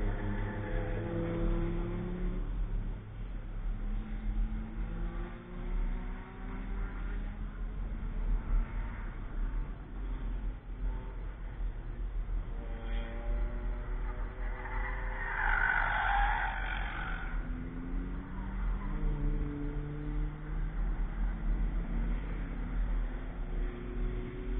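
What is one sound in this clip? Car engines rev and whine in the distance, rising and falling.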